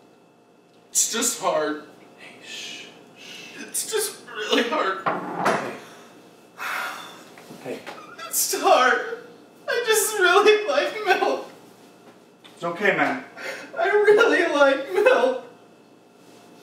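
A young man speaks in a shaky, upset voice close by.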